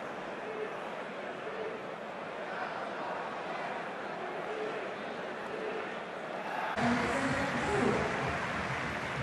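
A large crowd roars and cheers in an open stadium.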